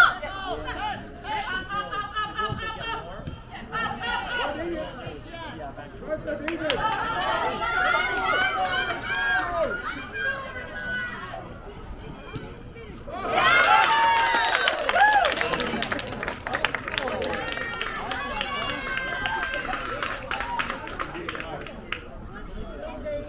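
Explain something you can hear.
Young players shout and call to each other outdoors across an open field.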